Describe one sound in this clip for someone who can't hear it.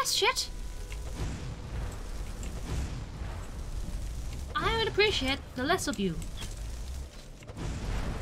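A fire spell roars and crackles.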